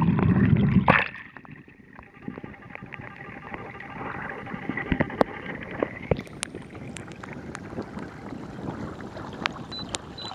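Small waves lap and splash against an inflatable boat's hull.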